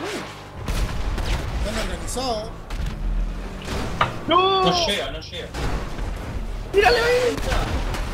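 A car crashes and tumbles over with loud metal bangs.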